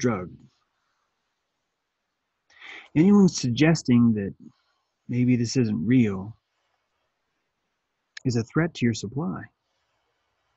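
A middle-aged man speaks calmly and close up, with pauses, as if over an online call.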